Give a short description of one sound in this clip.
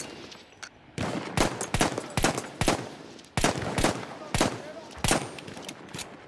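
A pistol fires a series of loud shots.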